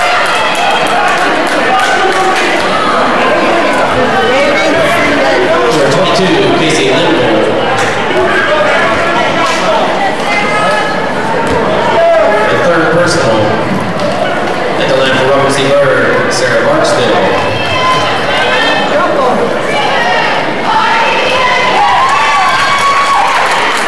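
A crowd of spectators chatters throughout an echoing gym.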